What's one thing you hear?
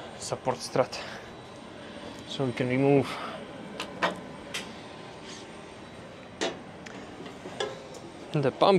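Metal parts click and clank.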